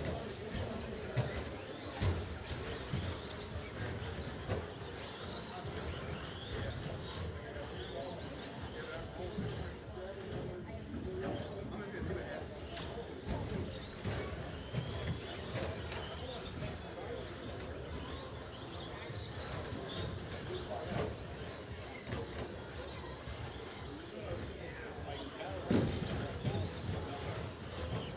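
Small electric model cars whine as they race around a track in a large echoing hall.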